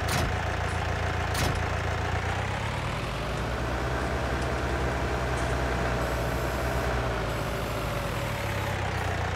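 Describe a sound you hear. A tractor engine hums steadily and rises and falls as the tractor drives.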